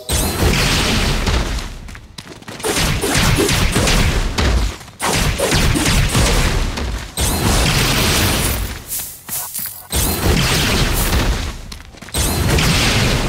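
Sword slashes swish and clang rapidly in a game battle.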